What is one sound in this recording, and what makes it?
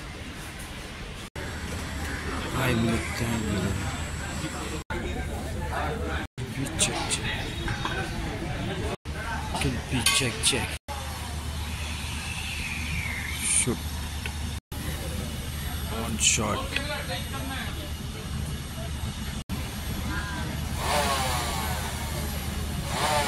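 Several men talk over each other nearby.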